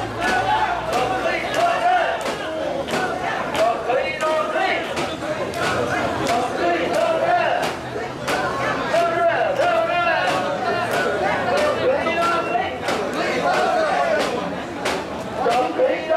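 A large crowd of men chant loudly together in rhythm outdoors.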